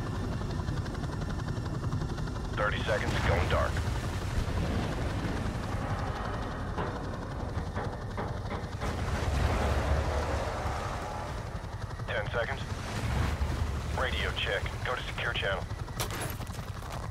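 A helicopter's engine and rotors rumble steadily, heard from inside the cabin.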